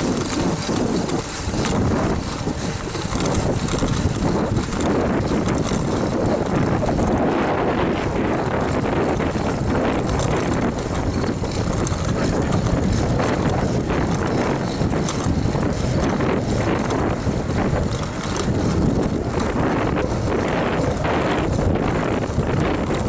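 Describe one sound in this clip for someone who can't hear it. Wind rushes over a microphone on a road bike at speed.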